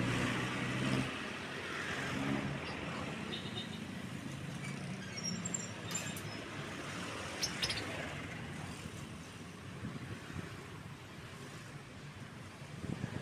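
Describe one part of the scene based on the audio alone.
Vehicles drive past close by on a street.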